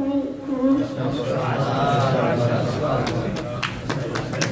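A crowd of men murmurs and chatters.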